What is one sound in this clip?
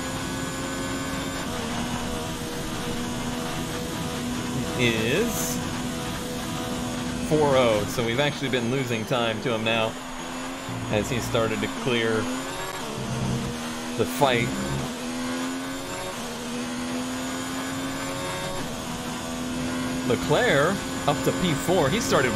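A racing car engine drones at high revs, dropping and rising in pitch as it shifts gears.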